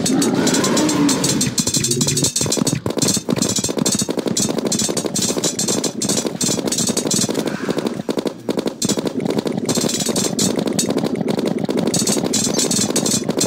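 A rapid-fire gun shoots in quick bursts.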